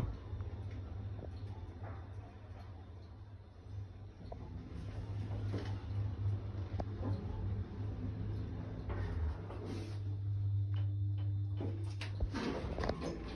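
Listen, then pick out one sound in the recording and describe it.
A traction lift car hums as it travels between floors.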